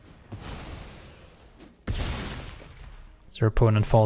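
A digital card game plays soft whooshing sound effects.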